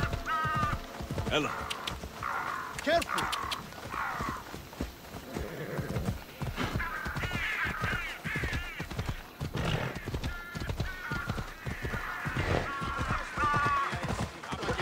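A horse's hooves thud steadily at a trot on the ground.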